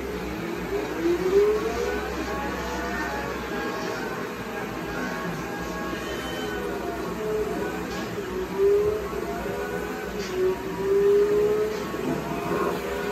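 A racing car engine revs and roars, rising in pitch as it speeds up.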